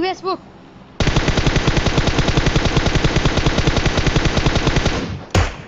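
A rifle fires rapid shots in a long burst.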